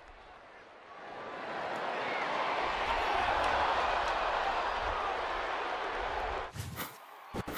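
A crowd cheers and roars loudly in a large open stadium.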